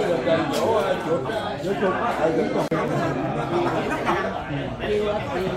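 Many elderly men and women chatter all around.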